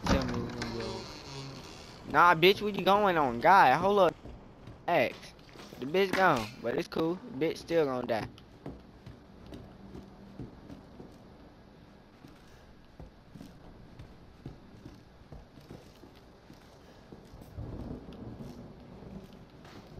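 Footsteps creak across a wooden floor.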